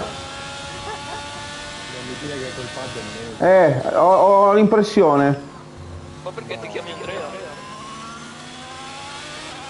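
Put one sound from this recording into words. A racing car engine whines at high revs, dropping in pitch as it shifts down.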